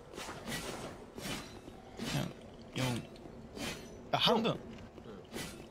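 A sword swishes through the air with sharp whooshes.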